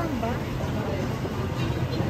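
Metal ladles clink against a pot.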